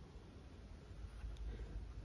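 A paintbrush strokes softly across canvas.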